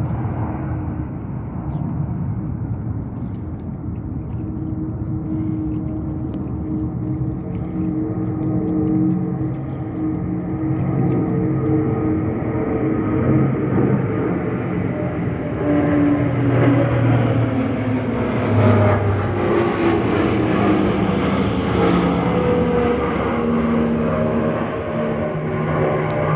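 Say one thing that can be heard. A propeller plane's engines drone overhead, growing louder as the plane passes close.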